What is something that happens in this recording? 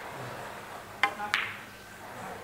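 Pool balls clack together sharply.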